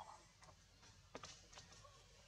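A bare foot steps on dry leaves.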